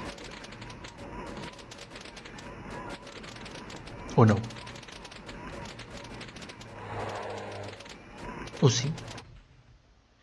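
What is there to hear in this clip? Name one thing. Cartoonish battle sound effects pop and crackle rapidly.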